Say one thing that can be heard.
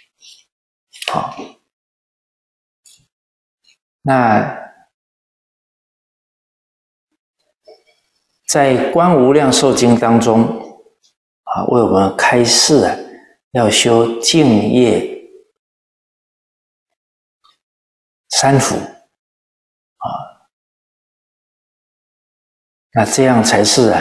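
An elderly man reads aloud calmly and slowly, close to a microphone, with long pauses.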